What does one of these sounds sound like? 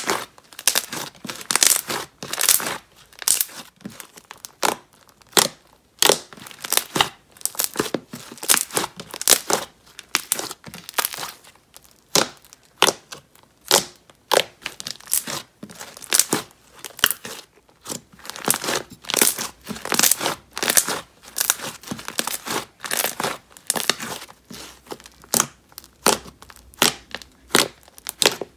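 Hands squeeze and squish soft sticky dough, crackling and popping close by.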